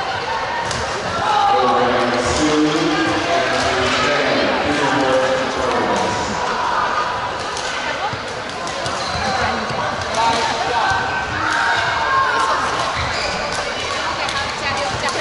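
Shuttlecocks are hit with sharp pops of rackets in a large echoing hall.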